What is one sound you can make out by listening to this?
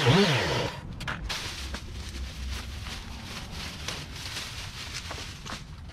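Leafy branches rustle and snap as they are pulled.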